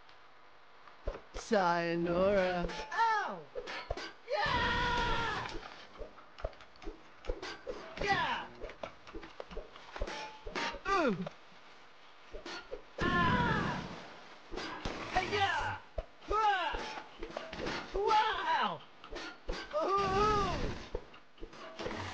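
Blows land with sharp, quick smacks in a fight.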